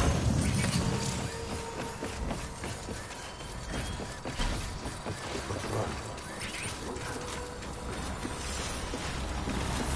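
Heavy footsteps thud on wooden planks.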